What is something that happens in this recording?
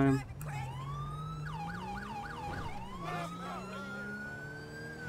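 A police siren wails, rising in pitch.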